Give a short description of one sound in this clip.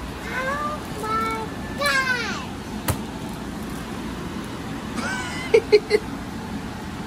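A young girl squeals and sings out excitedly, close by.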